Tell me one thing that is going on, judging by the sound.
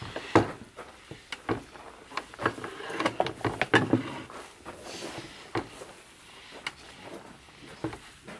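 Hands squish and knead wet dough.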